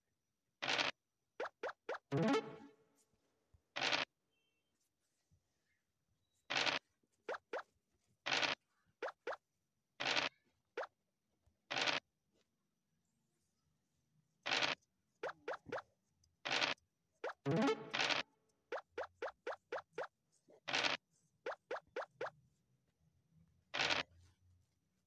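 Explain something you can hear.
A game die rattles as it rolls.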